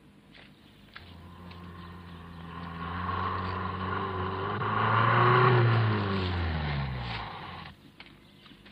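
An old car engine rumbles as a car drives up and slows to a stop.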